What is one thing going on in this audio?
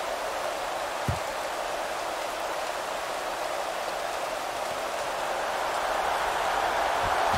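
A large stadium crowd roars steadily, swelling slightly toward the end.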